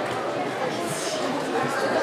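Footsteps tread across a wooden stage.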